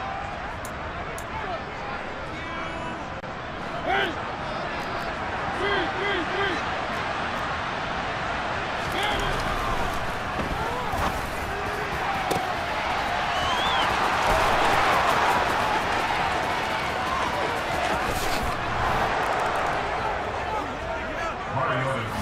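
A stadium crowd cheers and roars, swelling loudly midway.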